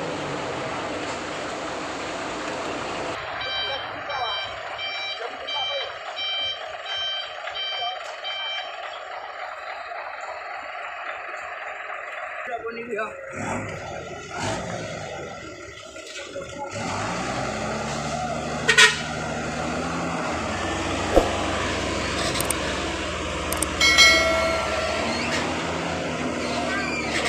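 A heavy truck engine rumbles and strains.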